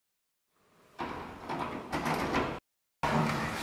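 A door handle clicks.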